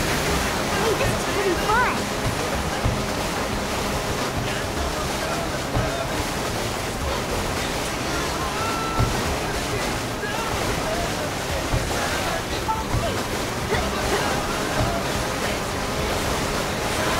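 A jet ski engine roars steadily.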